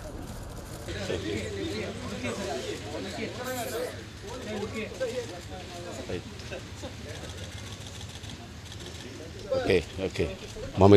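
A man talks cheerfully close by.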